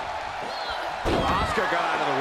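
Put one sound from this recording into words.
A body slams hard onto a wrestling mat with a thud.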